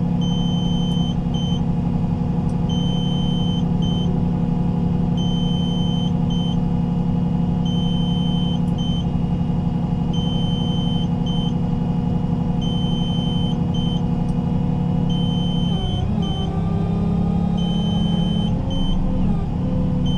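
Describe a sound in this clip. A heavy diesel tow truck engine idles.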